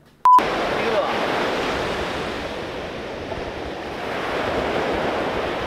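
Waves break and wash onto a beach.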